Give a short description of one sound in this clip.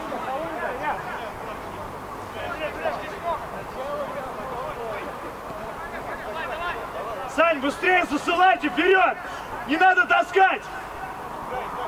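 Young men call out to each other at a distance outdoors.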